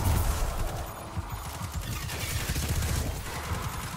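Electric energy crackles and fizzes.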